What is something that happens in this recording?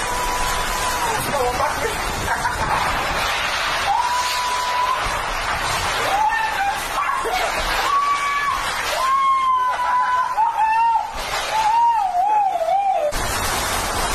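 Wind howls and whistles, rising and falling in pitch.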